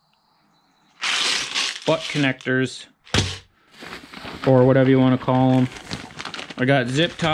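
Plastic packaging crinkles and rustles as it is handled close by.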